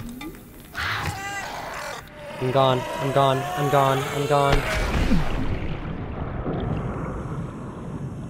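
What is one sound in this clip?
Water swirls and bubbles around a swimming diver.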